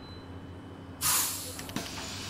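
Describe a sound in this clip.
Bus doors open with a sharp hiss of air.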